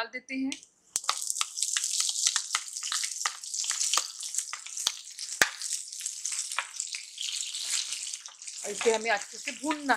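Chopped onions hit hot oil and sizzle loudly.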